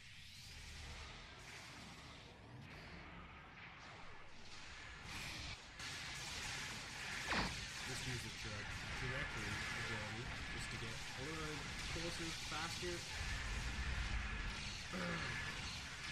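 Laser weapons fire in rapid, crackling bursts.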